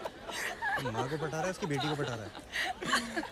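A young woman laughs brightly nearby.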